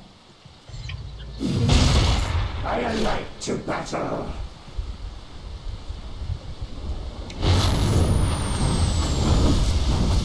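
Magic blasts and weapon hits clash in a fantasy battle.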